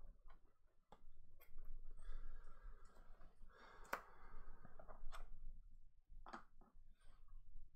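Game pieces and cards click and tap on a table.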